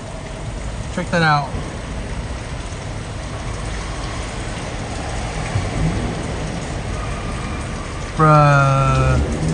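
A car engine rumbles low and steady nearby.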